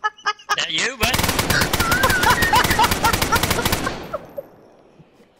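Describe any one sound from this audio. A rifle fires a long rapid burst of shots indoors.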